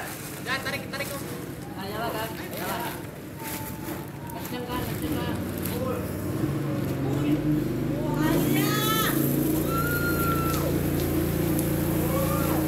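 Water sprays steadily from a garden hose.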